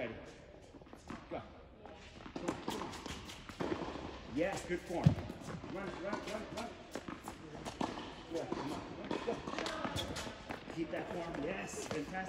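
Sneakers squeak and patter on a hard court.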